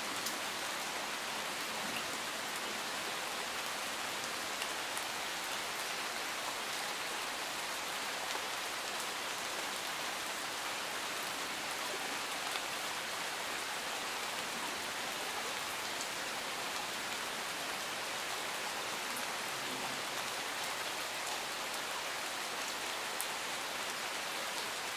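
Steady rain falls and patters on leaves and gravel outdoors.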